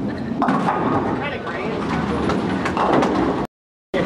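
Bowling pins crash and clatter as a ball strikes them.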